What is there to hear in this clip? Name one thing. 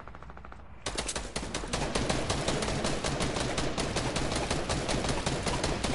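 Rapid gunfire rattles in a video game.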